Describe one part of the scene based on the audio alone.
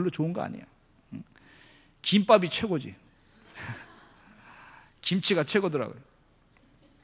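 A middle-aged man speaks with emphasis into a microphone, in short bursts with pauses.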